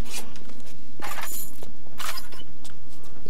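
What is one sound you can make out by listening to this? A hand rummages through and picks up small items with soft rustles and clicks.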